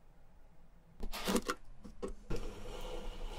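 A plastic cap clicks as it is twisted open.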